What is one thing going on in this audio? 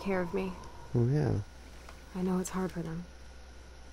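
Another young woman answers softly, close by.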